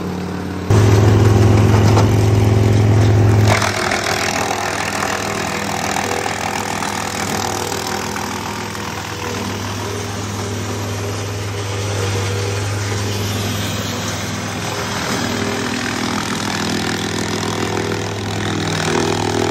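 A wood chipper engine roars steadily.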